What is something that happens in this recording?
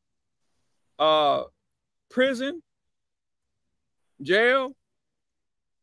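A man speaks briefly in short phrases over an online call.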